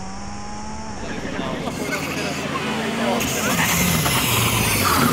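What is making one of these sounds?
A turbocharged four-cylinder rally car roars as it approaches at speed.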